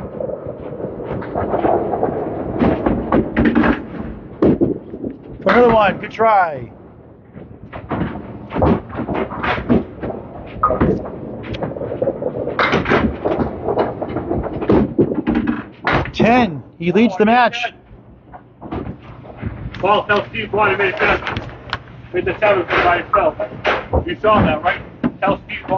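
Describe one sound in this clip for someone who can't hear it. Voices and bowling noise echo through a large hall.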